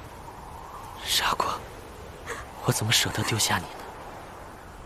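A young man speaks softly and tenderly.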